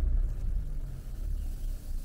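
Grain pours and patters onto a tarp.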